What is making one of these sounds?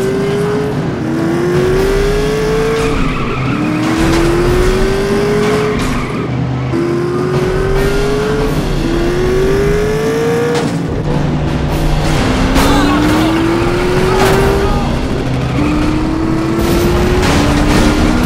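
A race car engine roars and rises in pitch as it shifts through gears.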